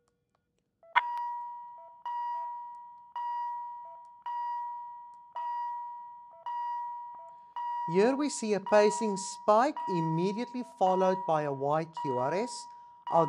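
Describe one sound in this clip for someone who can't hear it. A heart monitor beeps in a steady, regular rhythm.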